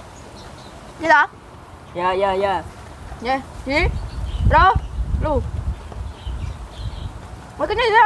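Two young girls talk playfully close by.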